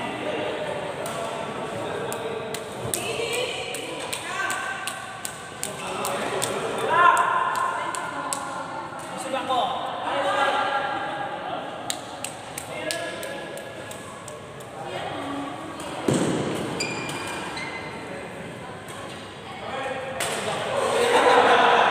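Badminton rackets strike a shuttlecock back and forth in a large echoing hall.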